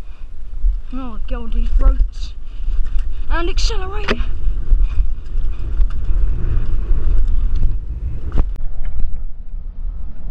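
Bicycle tyres roll fast over a dirt trail.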